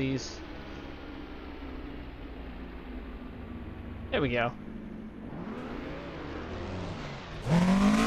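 A racing car engine drones steadily, rising and falling in pitch.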